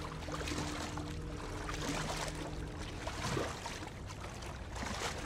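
Water splashes and trickles in an echoing tunnel.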